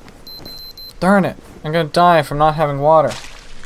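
A young man speaks with animation close to a headset microphone.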